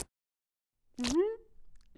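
A small creature squeaks in surprise.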